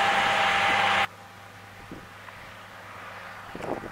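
A tractor engine rumbles nearby.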